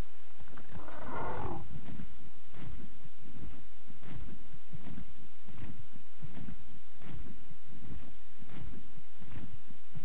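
Large wings flap in quick, rhythmic whooshes.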